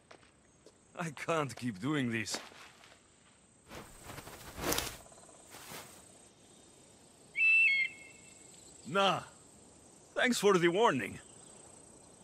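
A man speaks wearily, close by.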